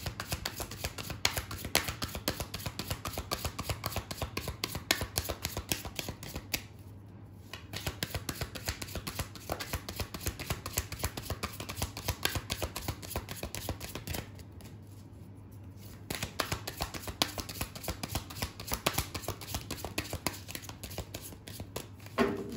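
Playing cards flick and patter rapidly as a hand shuffles them, with two short pauses.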